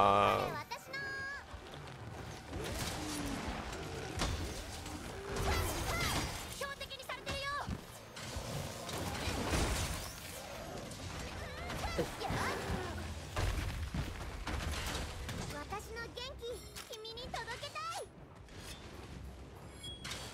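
Heavy blade strikes thud and clang against a huge beast.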